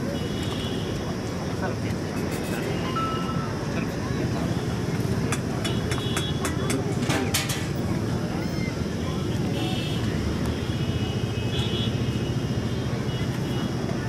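A crowd of men murmurs and talks nearby outdoors.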